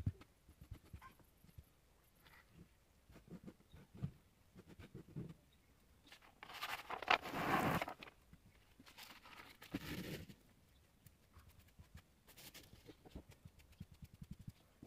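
Small metal parts click softly on a table.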